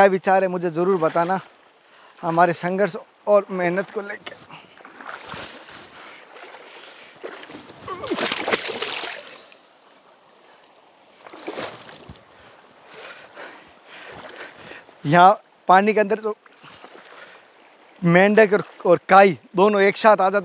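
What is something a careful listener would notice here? Water splashes around a man's legs as he wades through a shallow river.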